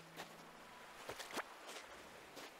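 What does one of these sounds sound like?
A fishing line whips through the air.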